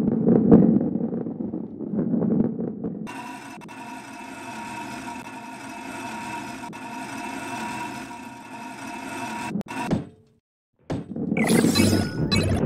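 A ball rolls with a low rumble over a wooden surface.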